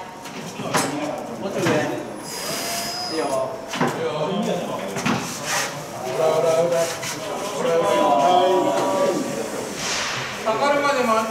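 A heavy load scrapes and thumps as workers push it.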